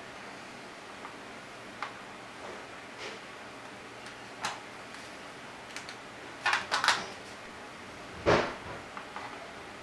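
Fingers tap and click on plastic buttons close by.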